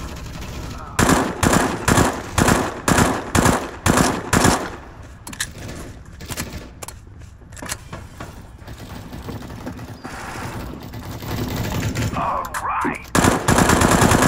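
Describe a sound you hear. A rifle fires in short, rapid bursts.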